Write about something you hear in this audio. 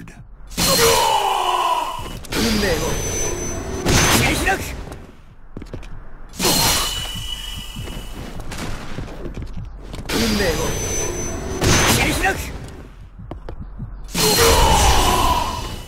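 Swords clash with ringing metal-on-metal hits.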